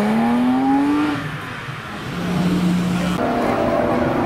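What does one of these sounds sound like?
A sports car engine revs and roars as the car pulls away.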